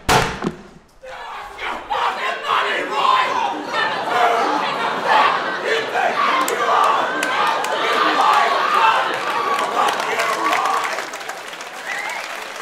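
A crowd applauds and cheers loudly.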